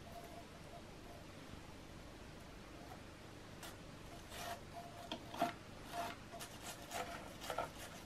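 A toothbrush scrubs against metal parts with a dry bristly scratching.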